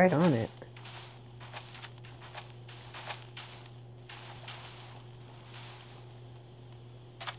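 Blocks of sand crunch softly as they are dug, again and again.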